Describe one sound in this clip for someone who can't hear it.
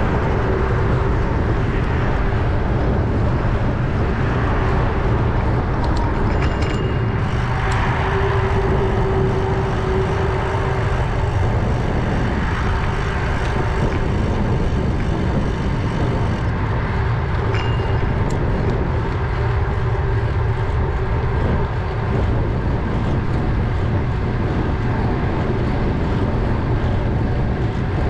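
A car's engine hums and its tyres roar steadily on the road.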